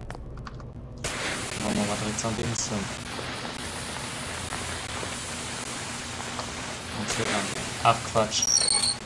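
A flare hisses steadily as it burns.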